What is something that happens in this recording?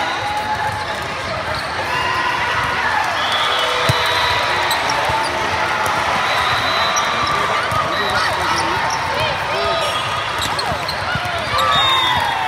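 A crowd of spectators chatters and cheers throughout a large echoing hall.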